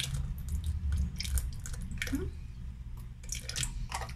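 Liquid pours from a carton into a glass.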